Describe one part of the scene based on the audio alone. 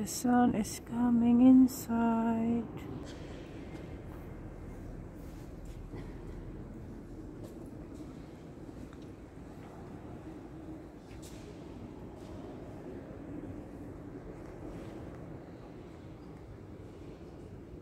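Visitors murmur softly in a large, echoing hall.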